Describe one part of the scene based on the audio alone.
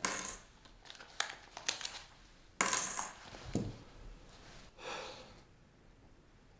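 Paper rustles and crinkles as a sheet is handled.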